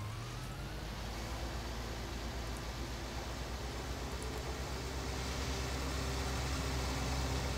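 A tractor engine rumbles steadily and grows louder as it speeds up.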